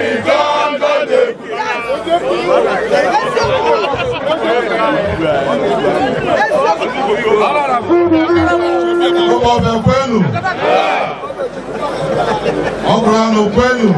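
A crowd of men talk and shout excitedly all around, outdoors.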